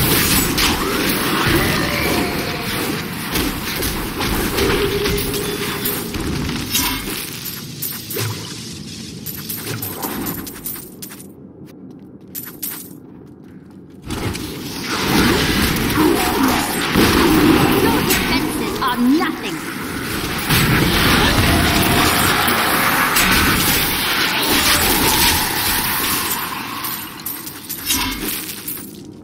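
Magic blasts crackle and boom in quick bursts.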